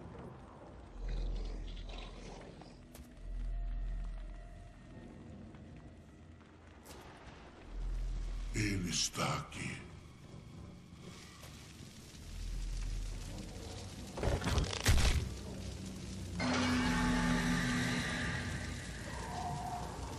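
Deep rumbling booms swell and fade.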